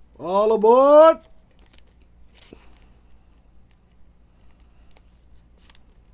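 A plastic sleeve crinkles as a card slides into it.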